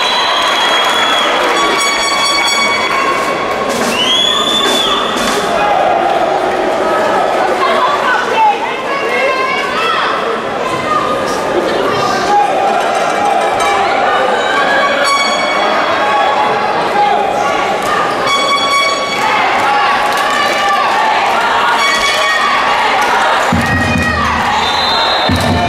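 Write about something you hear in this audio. A ball bounces on the court floor.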